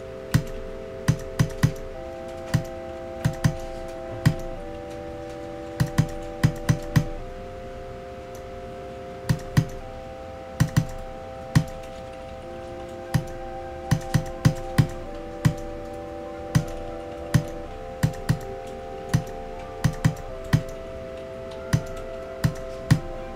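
Upbeat electronic game music plays with steady held synth chords.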